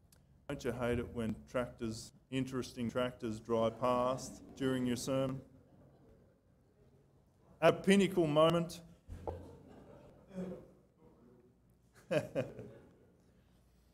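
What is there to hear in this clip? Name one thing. A man speaks calmly through a microphone in a large room, pausing between phrases.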